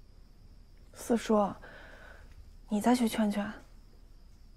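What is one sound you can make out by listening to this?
A young woman speaks calmly and pleadingly.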